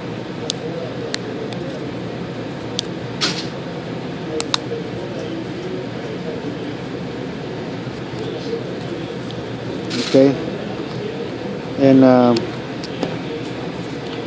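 A plastic pry tool clicks and snaps as a phone's back cover is prised open.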